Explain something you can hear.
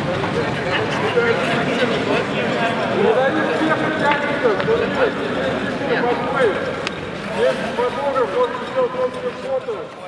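A group of young men shout and cheer in a large echoing arena.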